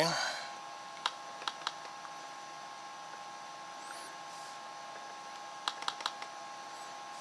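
A laptop touchpad button clicks a few times.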